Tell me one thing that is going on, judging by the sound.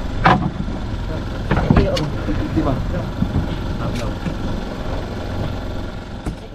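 A fish flaps and thumps on a boat deck.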